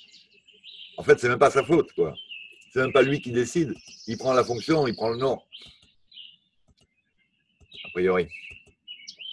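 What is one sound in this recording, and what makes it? An elderly man speaks calmly and close to a microphone, in short phrases with pauses.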